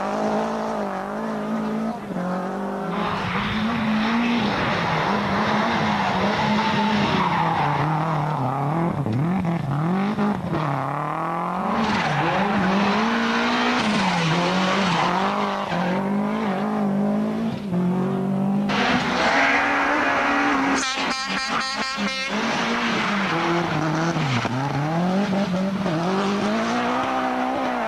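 A turbocharged four-cylinder rally car revs hard through corners.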